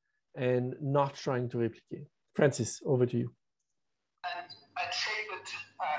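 A middle-aged man speaks calmly through an online call.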